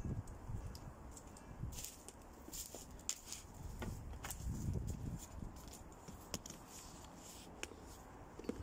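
Twigs and branches rustle and snap close by.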